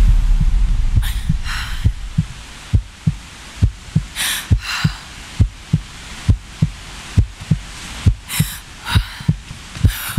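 Footsteps thud quickly on rock.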